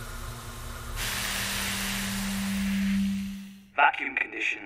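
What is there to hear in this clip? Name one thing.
Air hisses loudly and steadily from vents.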